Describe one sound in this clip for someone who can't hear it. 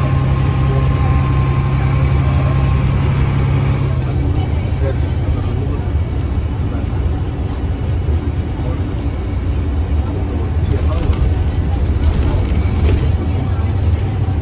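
A bus engine rumbles low and steady while the bus drives.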